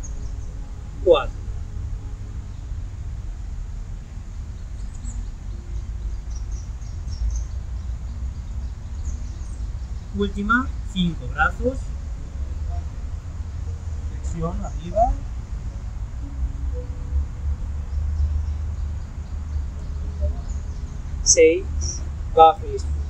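A man speaks briefly and calmly close by, outdoors.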